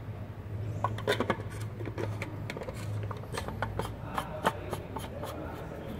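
A plastic filter housing clicks and scrapes as it is screwed in by hand.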